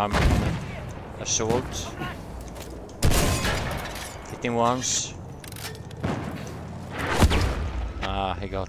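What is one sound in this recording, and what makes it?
Loud explosions and gunfire boom in bursts.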